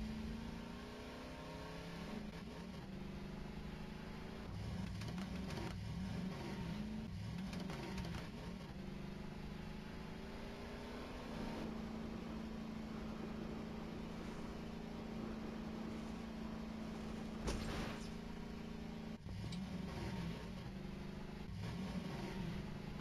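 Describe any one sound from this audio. A quad bike engine hums and revs up and down.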